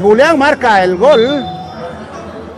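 A young man shouts loudly nearby in an echoing hall.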